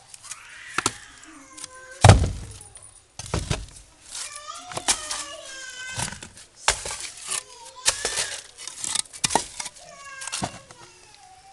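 Bricks knock and scrape against each other.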